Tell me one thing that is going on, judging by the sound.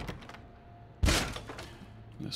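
A door is kicked open with a loud thud.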